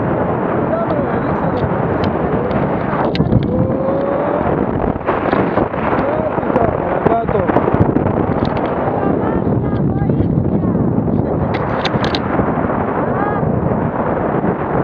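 Strong wind rushes and buffets loudly past the microphone outdoors.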